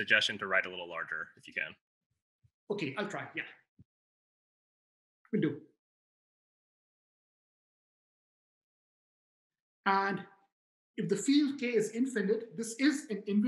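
A man speaks calmly through an online call, pausing between phrases.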